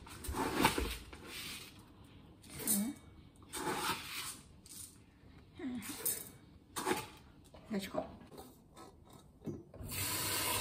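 Rice grains rattle and scrape in a metal pot.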